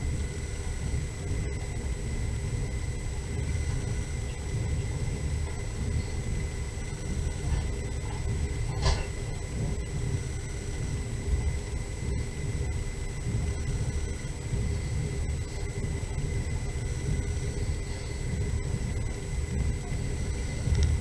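Tyres roll over packed snow.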